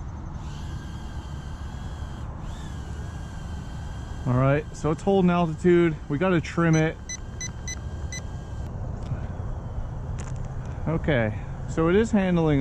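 A small electric motor whines steadily.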